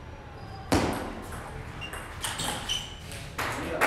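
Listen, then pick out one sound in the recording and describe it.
A ball clicks back and forth across a table tennis table in a large echoing hall.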